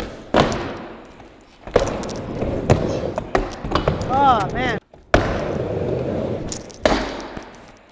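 Skateboard wheels clack hard against a ramp edge.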